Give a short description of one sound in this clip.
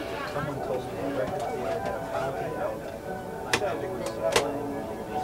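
A train carriage rumbles steadily along the tracks.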